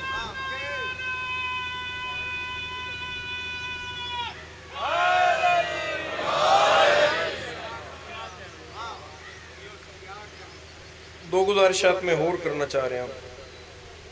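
A young man chants with long held notes through a microphone and loudspeaker.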